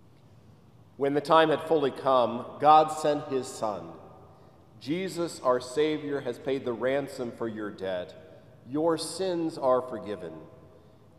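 A middle-aged man speaks calmly and solemnly, with a slight echo.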